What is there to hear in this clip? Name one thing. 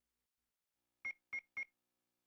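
Short electronic menu blips sound.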